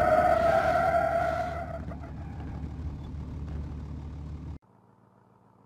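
A car engine roars and rumbles.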